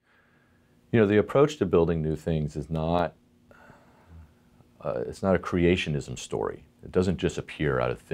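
A middle-aged man speaks calmly and thoughtfully into a close microphone.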